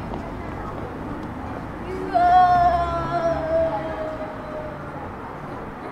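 A car drives slowly along a street nearby.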